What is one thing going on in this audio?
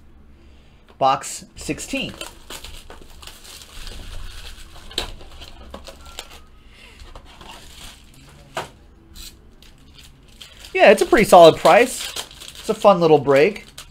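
Plastic wrapping crinkles as hands tear open a pack.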